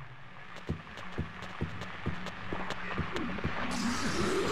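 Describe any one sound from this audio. Footsteps thud slowly and steadily on a hard floor.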